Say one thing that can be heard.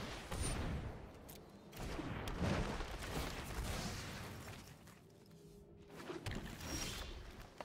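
Digital card game sound effects whoosh and chime as cards are played.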